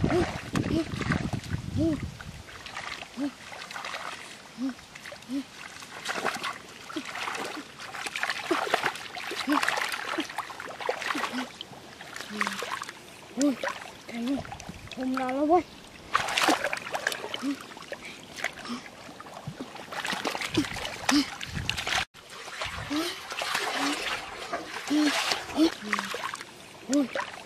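Water splashes and sloshes in shallow mud.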